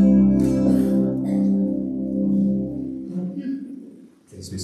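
A band plays music in an echoing hall.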